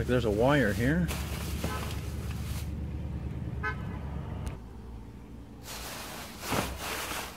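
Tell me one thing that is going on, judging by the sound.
Plastic bags rustle and crinkle close by.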